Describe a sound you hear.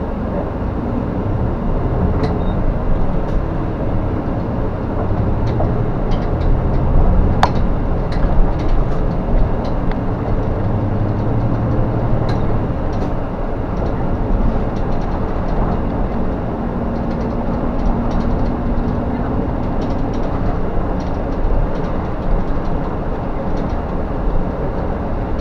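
The bus body rattles and clicks over the road.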